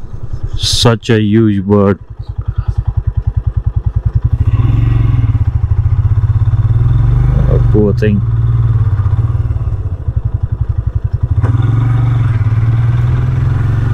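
A motorcycle engine putters steadily, rising and falling as the rider speeds up and slows down.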